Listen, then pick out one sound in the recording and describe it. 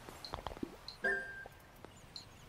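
A short chime sounds as a menu opens.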